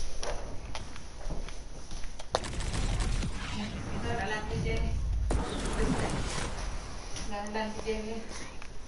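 Video game sound effects thump and whoosh.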